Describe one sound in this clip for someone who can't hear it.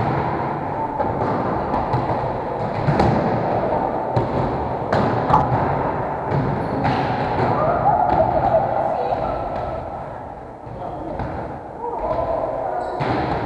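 A volleyball thuds as players hit it in a large echoing hall.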